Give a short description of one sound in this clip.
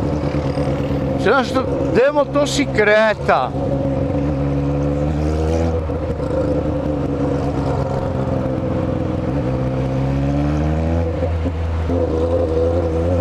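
A motorcycle engine rumbles close by, its pitch rising and falling as it revs.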